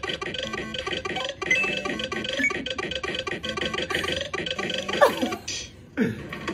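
Upbeat electronic game music plays with quick beeps.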